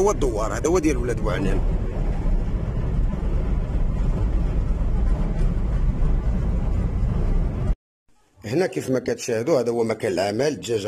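A man speaks close by with animation.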